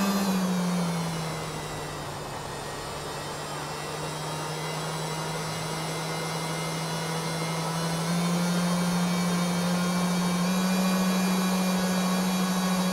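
A motorbike engine hums steadily, its pitch shifting in small steps.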